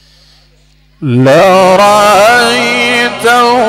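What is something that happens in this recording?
A man chants loudly through a microphone, with a melodic, sustained voice.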